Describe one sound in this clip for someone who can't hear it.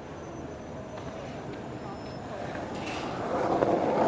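A bus pulls up with its engine rumbling.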